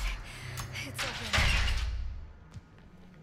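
A heavy metal door slides open with a rumbling scrape.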